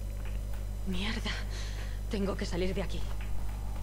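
A young woman mutters breathlessly, close by.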